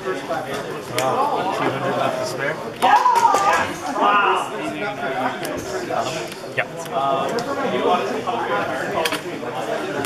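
Playing cards slap and tap onto a table.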